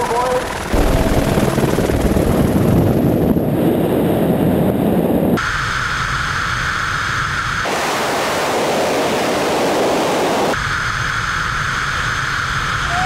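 Wind roars loudly past the microphone.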